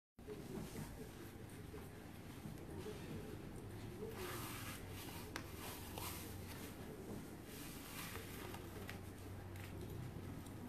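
Clothing rustles and shifts close by.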